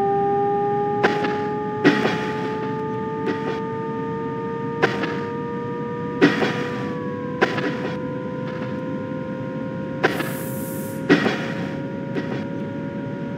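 Train wheels clack over rail joints at uneven intervals.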